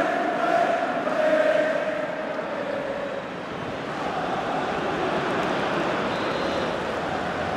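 A large crowd cheers and chants loudly in a stadium.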